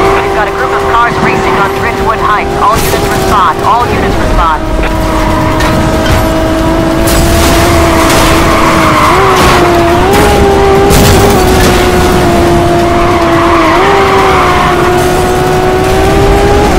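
A sports car engine drones loudly at high speed, its pitch dipping and rising with gear changes.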